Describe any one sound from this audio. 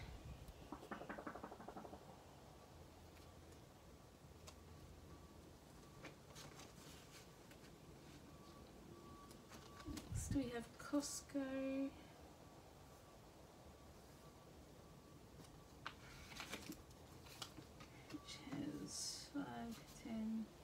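Plastic banknotes rustle and crinkle in hands.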